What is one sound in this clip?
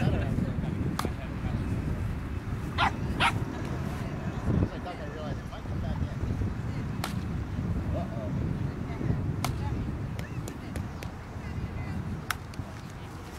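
A plastic bat strikes a ball with a sharp crack.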